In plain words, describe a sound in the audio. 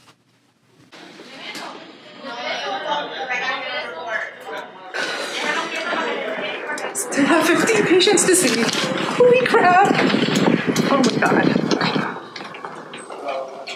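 A young woman talks cheerfully while walking in an echoing corridor.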